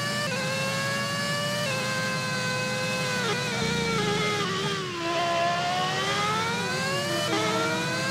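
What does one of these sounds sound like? A racing car engine whines at high revs, dropping in pitch at each gear change.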